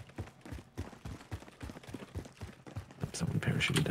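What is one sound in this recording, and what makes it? Footsteps patter quickly on hard stone steps.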